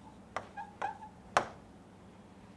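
A pen taps and scrapes on a hard board.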